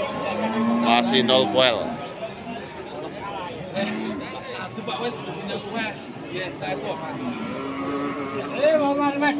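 A crowd of men chatter and call out nearby outdoors.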